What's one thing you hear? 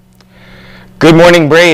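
A teenage boy speaks clearly and loudly into a close microphone.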